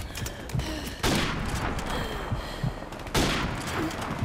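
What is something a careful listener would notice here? A sniper rifle fires loud single shots.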